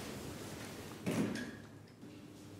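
Elevator doors slide shut with a soft thud.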